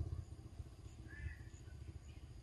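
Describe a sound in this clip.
A baby monkey gives a short, high squeak.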